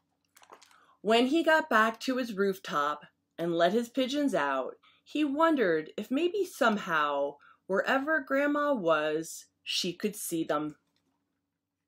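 A middle-aged woman reads a story aloud calmly, close by.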